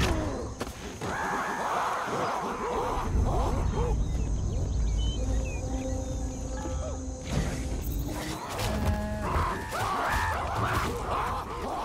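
Chimpanzees hoot and screech excitedly.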